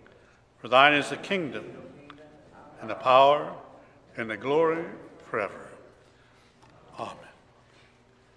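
A man speaks slowly and calmly through a microphone in a reverberant room.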